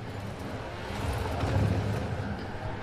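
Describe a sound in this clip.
Debris clatters against a car.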